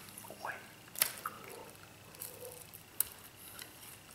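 A cracker crunches as a man bites and chews it.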